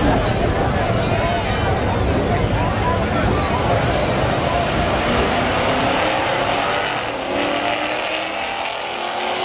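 Car engines roar loudly as cars accelerate hard.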